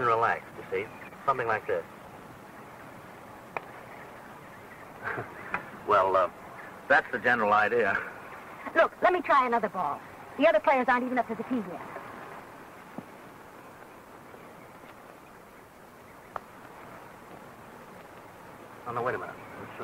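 A man speaks with animation, heard through an old, hissy recording.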